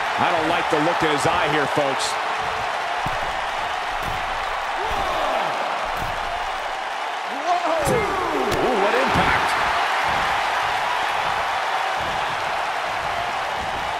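A large crowd roars and cheers steadily.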